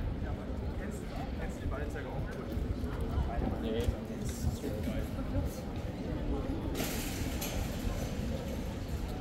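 Footsteps of people walking on pavement pass close by.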